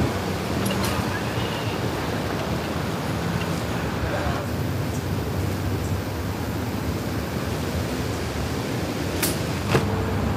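Trampoline springs creak and squeak as a girl bounces.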